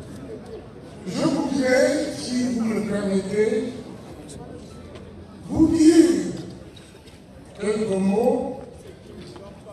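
A man speaks loudly through a microphone and loudspeakers, in bursts, outdoors.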